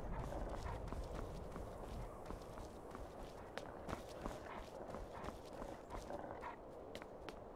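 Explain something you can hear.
Footsteps walk steadily over snow and stone.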